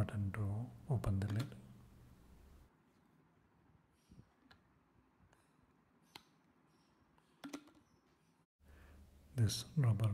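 A plastic flip lid snaps open and shut with clicks.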